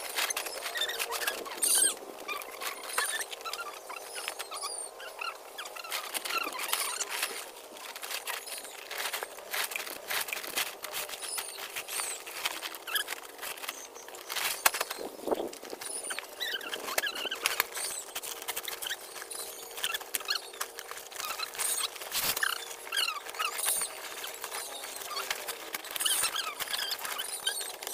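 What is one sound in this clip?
Plastic sacks rustle and crinkle as they are handled close by.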